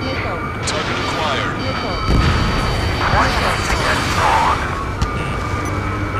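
A missile whooshes away.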